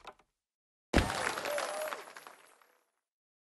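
A cheerful burst of celebration sounds plays and fades.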